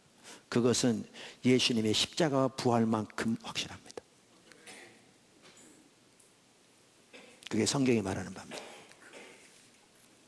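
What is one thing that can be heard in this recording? An elderly man preaches with animation into a microphone.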